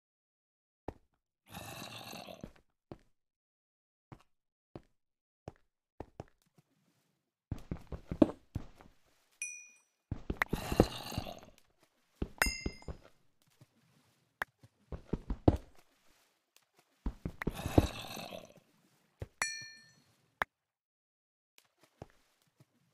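A pickaxe taps repeatedly at stone, and blocks crumble as they break.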